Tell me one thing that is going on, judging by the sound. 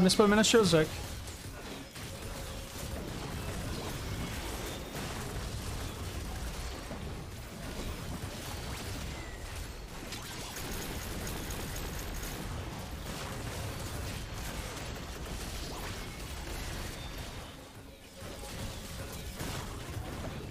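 Game battle effects whoosh and crackle steadily.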